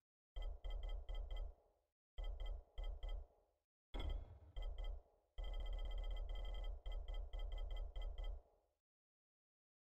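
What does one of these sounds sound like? Short electronic menu ticks click in quick bursts as a list scrolls.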